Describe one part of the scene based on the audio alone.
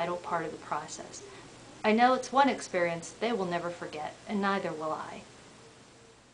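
A woman speaks calmly and earnestly, close to the microphone.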